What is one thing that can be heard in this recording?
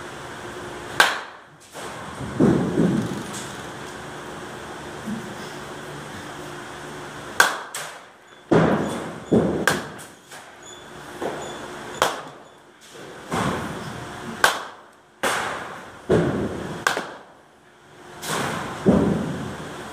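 A baseball bat cracks against a ball again and again.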